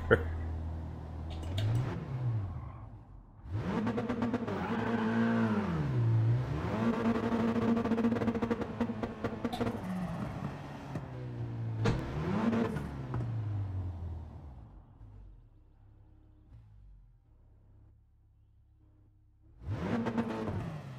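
A racing car's engine revs up and down as it shifts gears.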